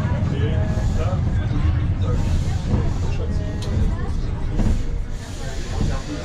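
A subway train rumbles and slows as it rolls into a station.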